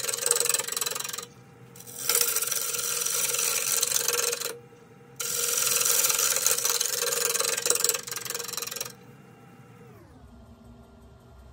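A lathe motor whirs and then winds down.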